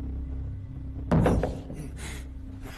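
A heavy wooden floor panel thuds as it is pushed open.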